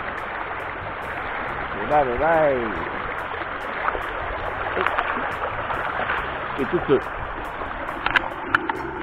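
A shallow river flows and splashes over rocks.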